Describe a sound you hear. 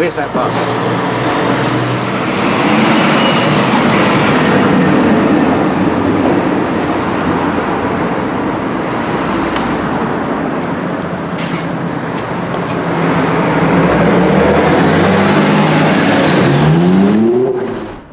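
A diesel coach engine rumbles close by as the coach pulls away.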